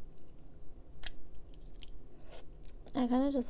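A plastic tooth aligner clicks as it is pulled off teeth.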